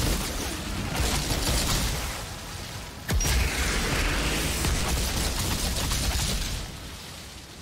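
Gunfire bursts loudly and rapidly.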